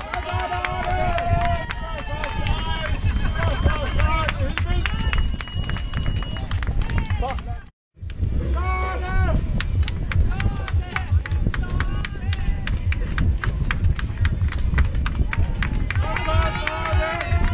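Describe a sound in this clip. Spectators clap their hands rapidly.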